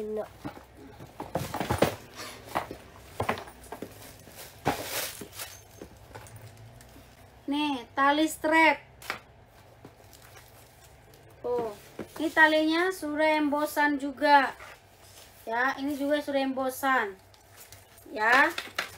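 Paper and plastic wrapping rustle and crinkle.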